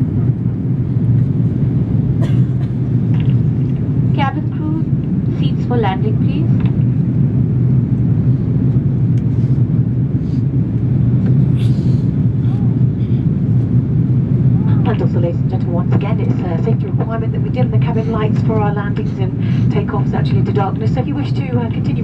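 A jet engine drones steadily inside an aircraft cabin.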